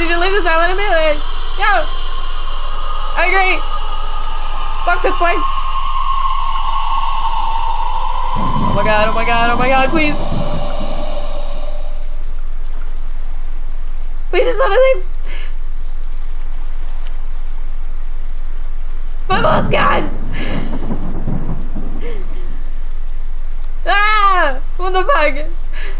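A woman talks quietly into a microphone, with pauses.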